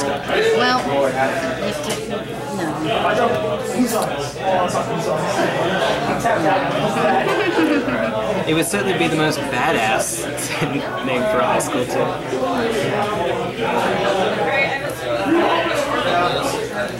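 Playing cards rustle and flick as they are shuffled by hand.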